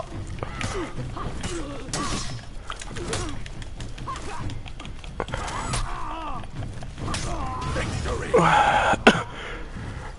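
Swords clash and clang in a fight.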